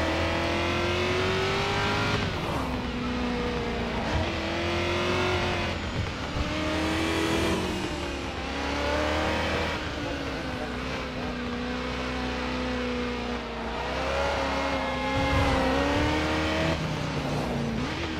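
A V8 sports car engine revs at speed, its pitch dropping and climbing as it shifts gears.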